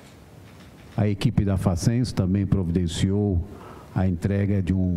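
A man speaks clearly and calmly close to a microphone.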